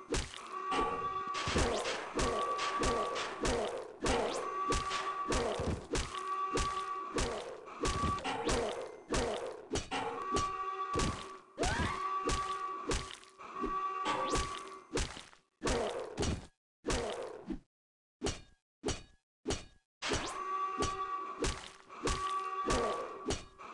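Zombies growl and snarl up close.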